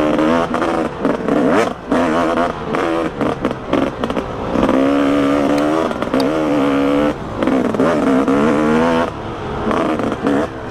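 Tyres crunch over a dirt track.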